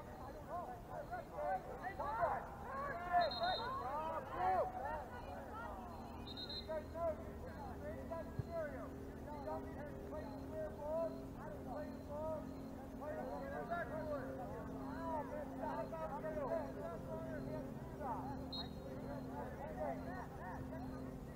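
Young men shout to each other in the distance, outdoors.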